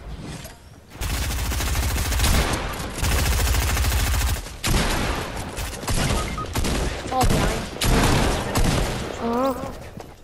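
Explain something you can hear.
Shotgun blasts ring out in quick, loud bursts.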